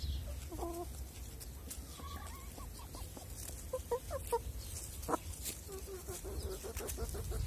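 Hens peck and scratch at dry leaves.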